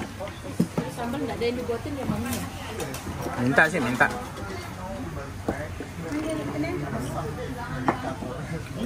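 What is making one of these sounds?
Several adult men and women chat casually at once, close by.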